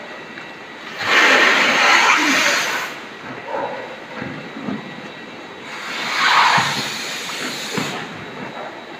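Compressed gas hisses loudly in short bursts from a hose.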